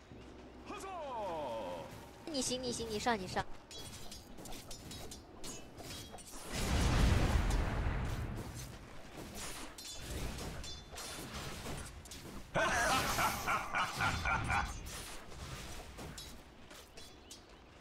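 Weapons strike with rapid, sharp hits.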